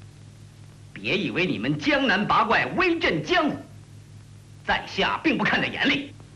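A young man speaks with a sneer, close by.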